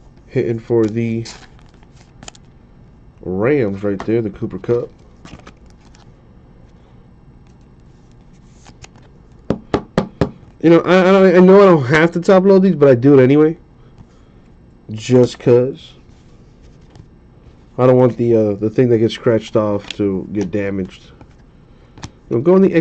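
Trading cards in plastic cases click and rustle in hands.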